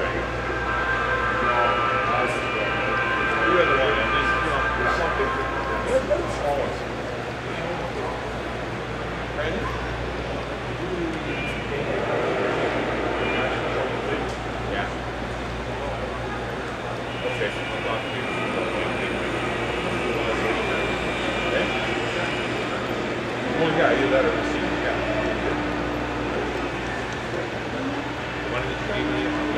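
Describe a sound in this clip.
A model train hums and rattles along its track.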